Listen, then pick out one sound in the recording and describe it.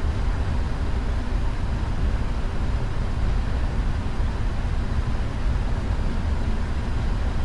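Tyres rumble on a runway.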